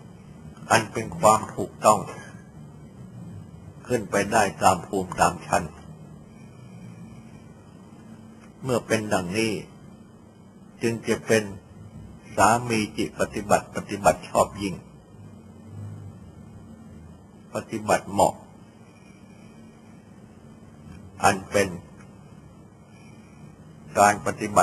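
An elderly man speaks slowly and calmly in short phrases, heard through an old recording.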